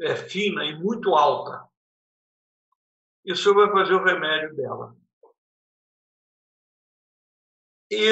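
An elderly man speaks calmly into a microphone over an online call, with pauses.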